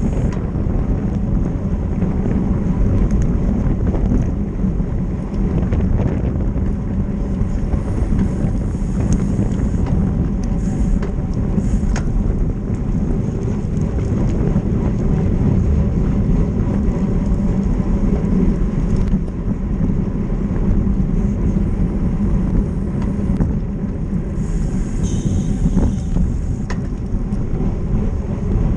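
Bicycle tyres hum on the road surface.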